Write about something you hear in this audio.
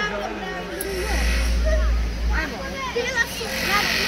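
A crowd of children chatters and calls out nearby, outdoors.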